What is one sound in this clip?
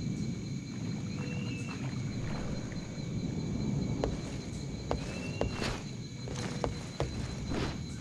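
Water sloshes as someone wades through it.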